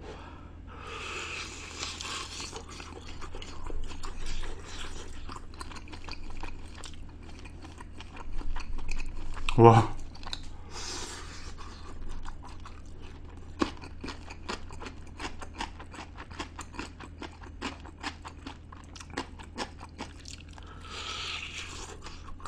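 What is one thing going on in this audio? A young man chews and smacks his lips while eating meat close to a microphone.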